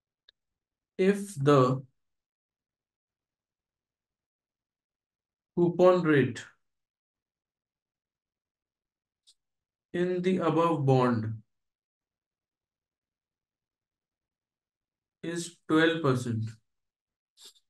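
A man speaks calmly into a close microphone in short phrases, with long pauses.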